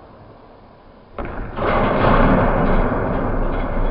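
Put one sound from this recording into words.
A basketball clangs against a hoop's rim.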